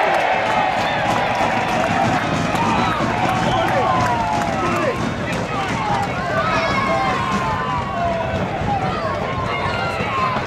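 A crowd of spectators cheers outdoors.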